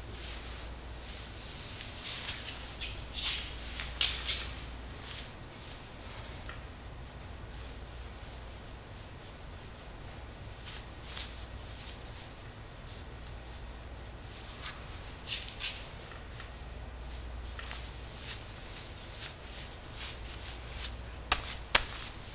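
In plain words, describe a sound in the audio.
Hands rub and press on cloth with soft brushing rustles.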